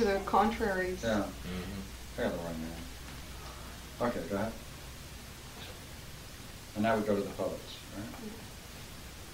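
A woman reads aloud calmly, close by.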